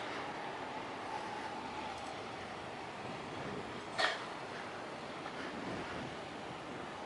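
Water laps softly against the floating docks.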